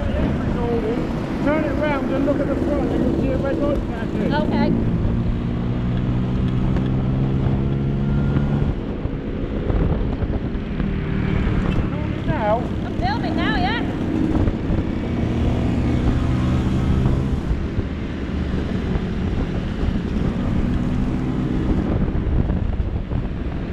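A scooter engine drones steadily up close, with its pitch rising and falling.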